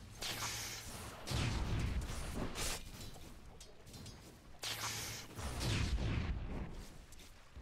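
Spells crackle and blast in a game battle.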